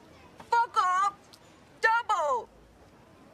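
A young woman speaks sharply up close.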